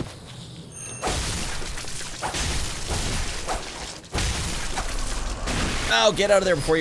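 Blades clash in a fight.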